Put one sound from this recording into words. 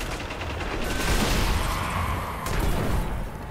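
Energy blasts crackle and whoosh.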